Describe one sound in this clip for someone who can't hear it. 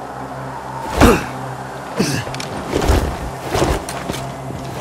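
Hands grab metal rungs with dull clanks.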